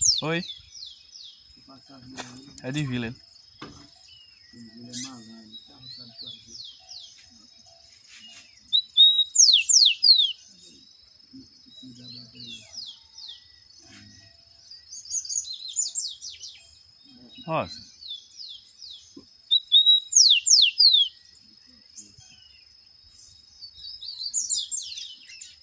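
A caged bird sings in loud, quick bursts of high chirps and whistles.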